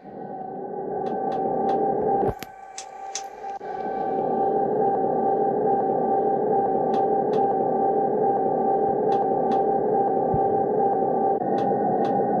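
Train wheels click over rail joints at a steady pace.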